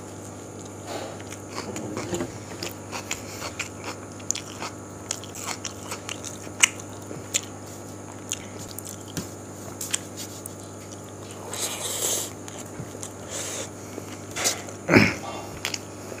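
Fingers squelch and mix rice on a metal plate.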